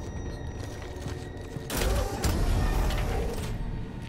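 A heavy door slides open with a loud rumble.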